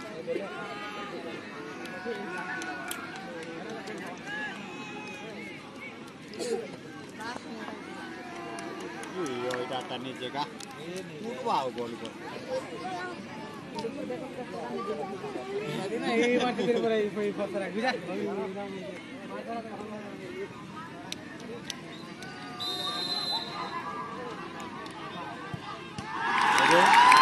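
A large crowd of spectators chatters and calls out outdoors.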